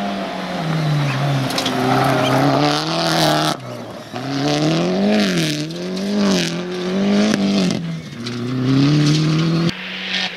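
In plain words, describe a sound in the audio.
Gravel sprays and crunches under a car's tyres.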